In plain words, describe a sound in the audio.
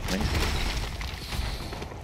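A large beast growls with a deep rumble.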